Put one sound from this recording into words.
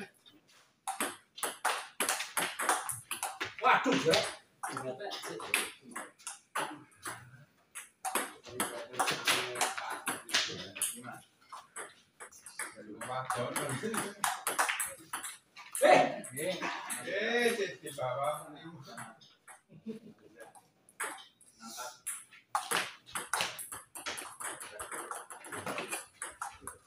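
A ping pong ball clicks back and forth on paddles and a table.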